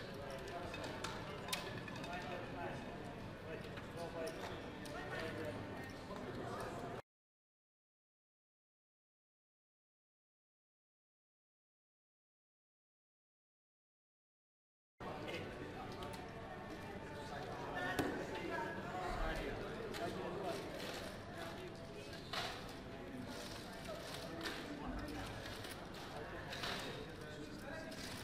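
Casino chips clatter and click as they are stacked and gathered.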